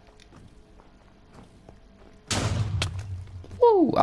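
Blocks crack and break under a pickaxe in a game.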